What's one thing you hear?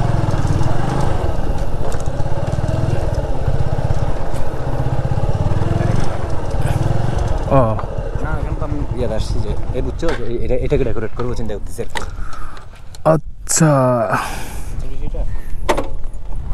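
A motorbike engine rumbles steadily up close.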